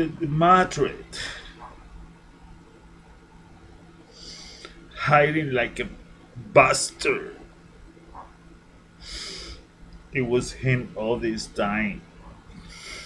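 A middle-aged man speaks close to a microphone in short, animated bursts.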